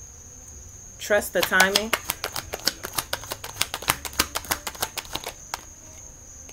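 Cards riffle and flap quickly as a deck is shuffled.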